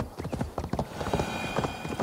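Hooves clop on a wooden bridge.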